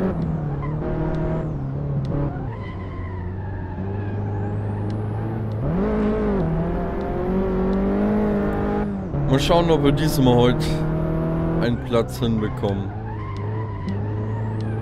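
A small car engine hums and revs steadily.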